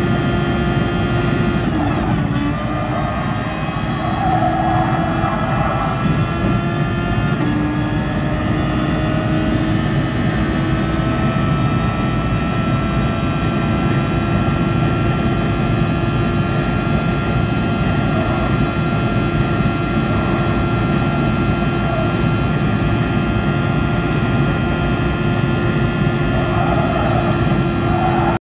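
A racing car engine screams at high revs, dropping in pitch at gear changes, then holding steady.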